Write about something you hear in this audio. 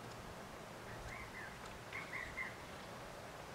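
A woodpecker calls with short, high chirps.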